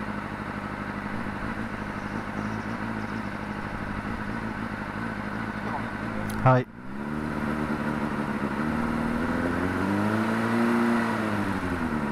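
A motorcycle engine idles close by, rising and falling gently in pitch.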